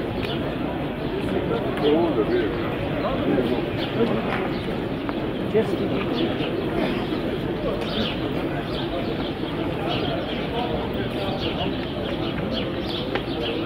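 A large crowd of men murmurs outdoors.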